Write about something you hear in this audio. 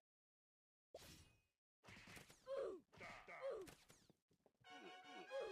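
Game fight sounds clash and pop.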